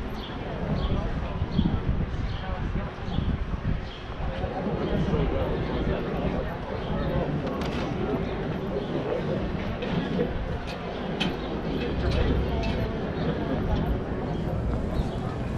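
A crowd of people chatter outdoors in the distance.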